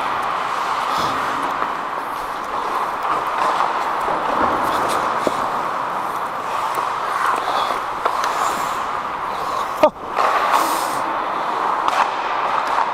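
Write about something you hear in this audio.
Hockey sticks clack against the ice and puck in a large echoing hall.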